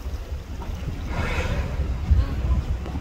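A humpback whale blows a spout of breath at the surface.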